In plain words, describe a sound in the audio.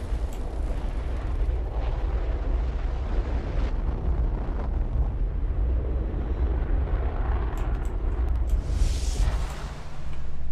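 Flames roar with a deep, steady rumble.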